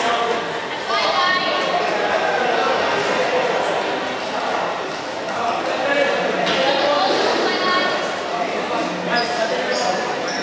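A ball thumps on a hard floor.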